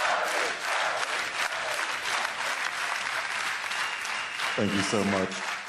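A large crowd cheers loudly in a big echoing hall.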